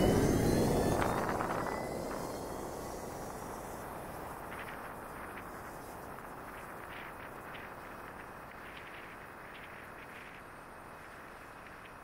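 Wind rushes past softly.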